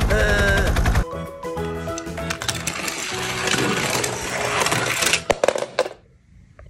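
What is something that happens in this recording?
Small toy cars clatter and roll on a plastic track.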